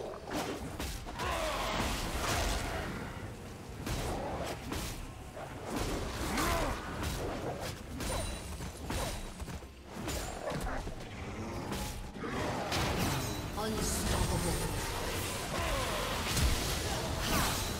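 Swords and blades clash with sharp metallic hits.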